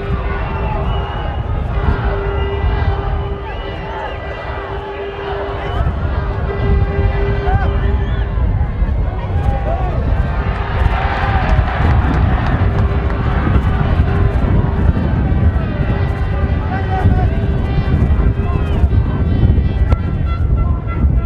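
A large outdoor crowd murmurs and calls out.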